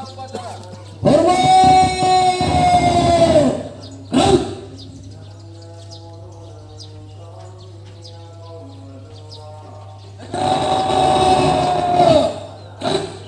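A man shouts long drawn-out commands through a loudspeaker.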